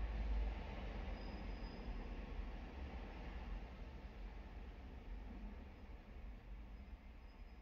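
A car engine idles with a low, steady rumble.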